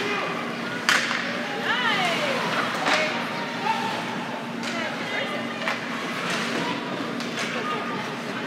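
A hockey stick hits a puck with a sharp clack.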